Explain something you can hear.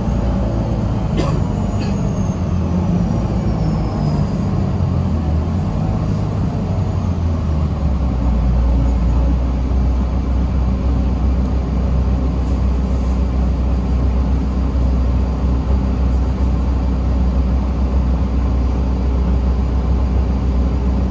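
A bus engine rumbles steadily from inside.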